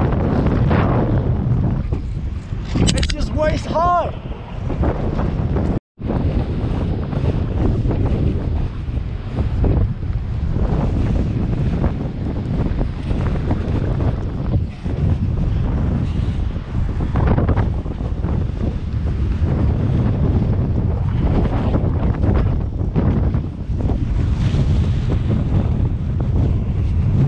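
Strong wind buffets loudly, rumbling throughout outdoors.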